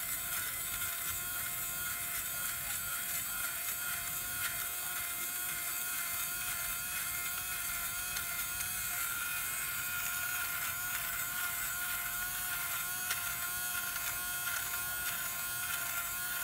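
Fabric shaver blades buzz and scrape against knitted wool.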